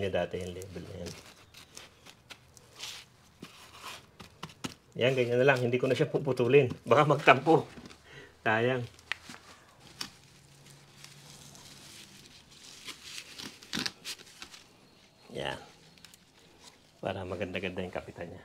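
Gloved hands scrape and pat loose soil in a pot.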